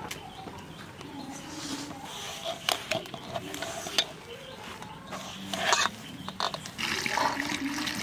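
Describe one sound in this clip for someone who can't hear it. A hand kneads dough in a metal bowl.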